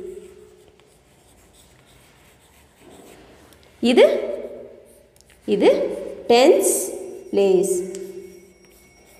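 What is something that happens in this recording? Chalk scrapes and taps on a board.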